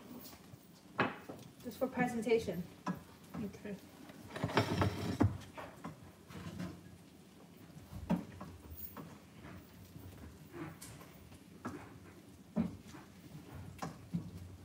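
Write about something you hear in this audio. Metal tongs clatter and scrape against a pan.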